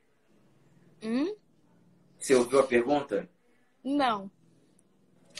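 A young woman gives a rising, playful exclamation over an online call.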